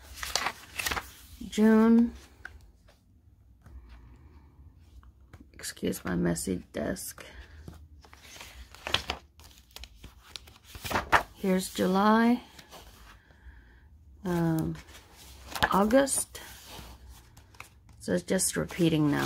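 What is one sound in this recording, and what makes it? Paper pages of a spiral notebook rustle and flip as they are turned.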